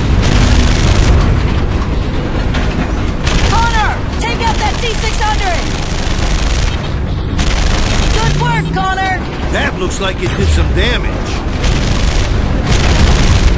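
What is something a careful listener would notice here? A rapid-fire gun rattles continuously.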